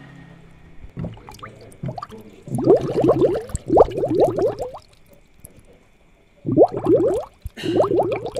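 Air bubbles gurgle softly in a fish tank.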